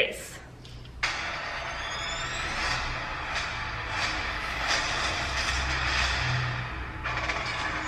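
A movie trailer's music and effects play loudly.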